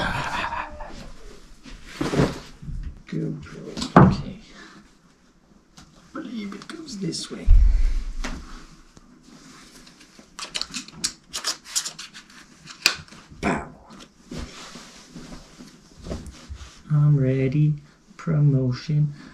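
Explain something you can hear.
A young man speaks casually, close to the microphone.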